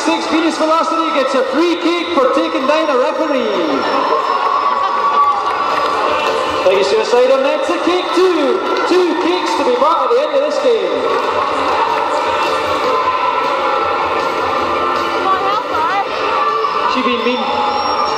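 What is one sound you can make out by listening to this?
A crowd murmurs and calls out.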